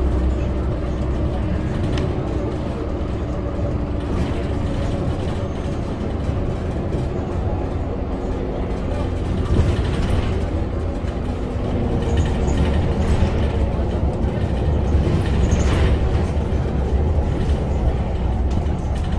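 A bus engine rumbles steadily from inside the bus.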